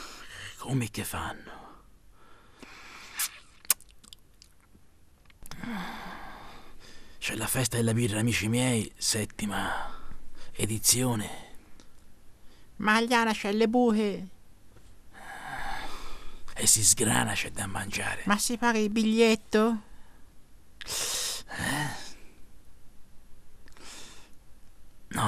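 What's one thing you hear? A man speaks quietly and calmly, close by.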